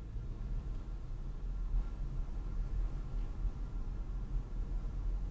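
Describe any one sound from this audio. A car engine rumbles low and steady from inside the car as it drives along.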